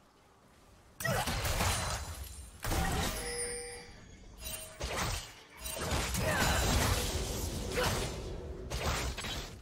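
Video game combat effects clash and burst loudly.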